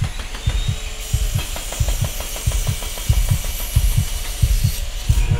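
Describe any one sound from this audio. A power saw grinds through metal with a shrill hiss.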